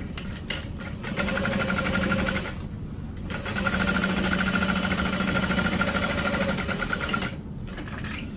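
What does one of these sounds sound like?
A sewing machine stitches with a steady, rapid whirr.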